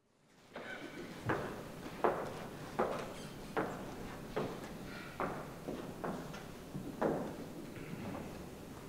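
Footsteps cross a wooden stage.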